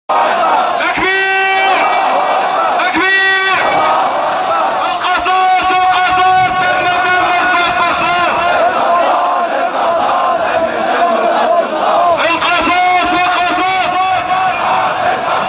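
A man's voice sings out through loudspeakers.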